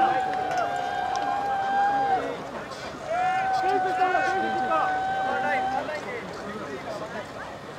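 A crowd of spectators murmurs and cheers outdoors in the distance.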